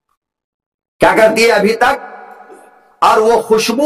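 An elderly man speaks with animation through a microphone and loudspeakers, his voice echoing.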